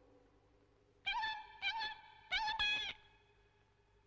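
A small creature chatters in a high squeaky voice.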